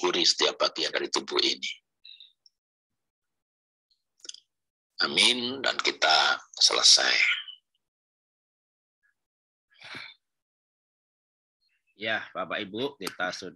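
A middle-aged man speaks calmly and close to the microphone, in short bursts with pauses.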